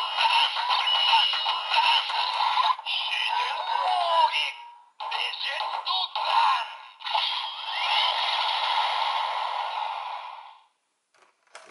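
A toy sword plays loud electronic sound effects and music.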